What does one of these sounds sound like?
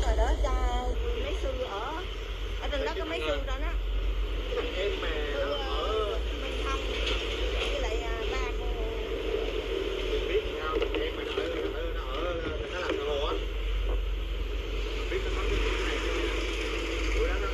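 Several men chatter nearby.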